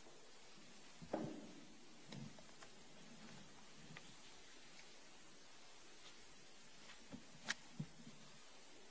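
A heavy book thumps onto a table and its pages rustle.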